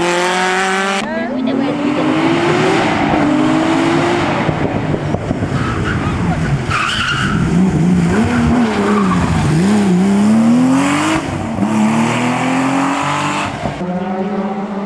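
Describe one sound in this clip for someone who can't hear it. A flat-six Porsche race car screams up through the gears.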